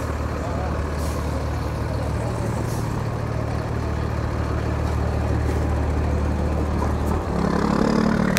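A diesel truck engine idles nearby with a low, steady rumble.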